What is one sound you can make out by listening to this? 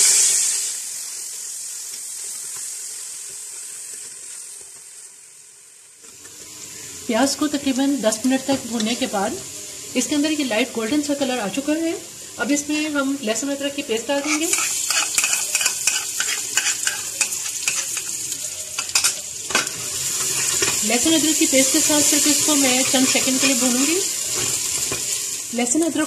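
A metal ladle scrapes and clinks against a pot while stirring.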